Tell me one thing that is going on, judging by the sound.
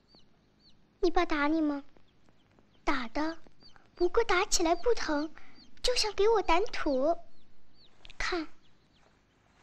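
A young girl speaks quietly, close by.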